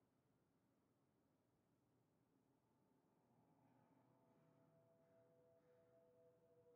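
A young man talks quietly into a microphone.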